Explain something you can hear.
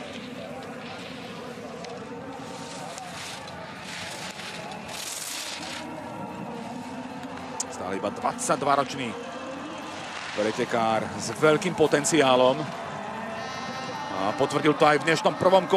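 Skis scrape and hiss over hard snow.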